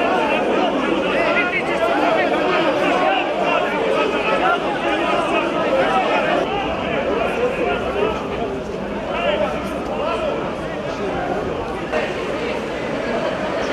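A large crowd of men shouts and clamours close by, outdoors.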